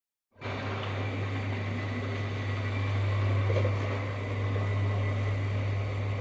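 A cement mixer motor hums steadily nearby.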